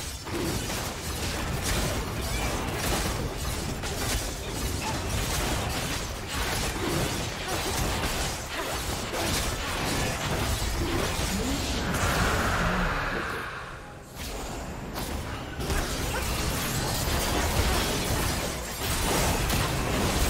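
Fantasy game spell effects crackle and burst in quick succession.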